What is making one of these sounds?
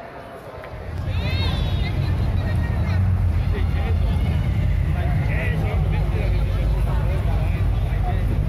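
A crowd chatters in the distance.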